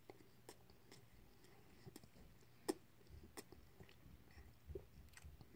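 Crunchy food crackles between a young man's teeth.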